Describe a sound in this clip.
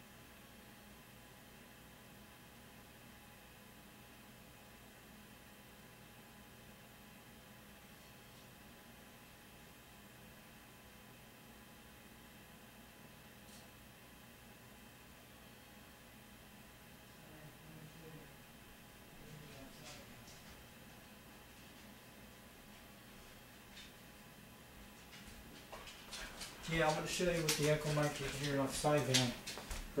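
A radio hisses softly with steady static.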